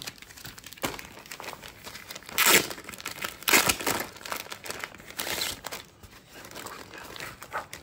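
Plastic film crinkles and rustles under hands.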